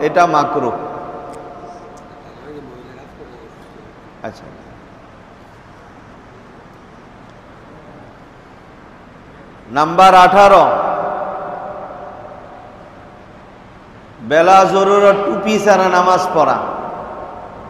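A man speaks loudly into a microphone in an echoing room, in bursts with long pauses.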